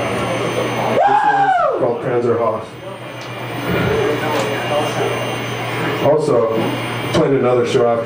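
A man screams harshly into a microphone through loudspeakers.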